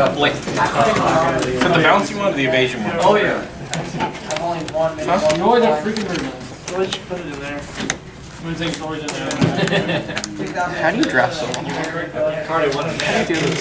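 Playing cards slap and slide onto a table.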